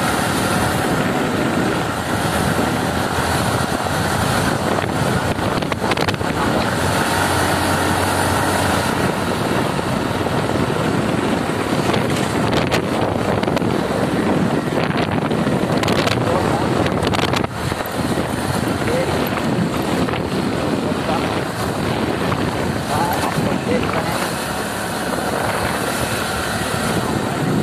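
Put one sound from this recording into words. A motorcycle engine runs steadily while riding.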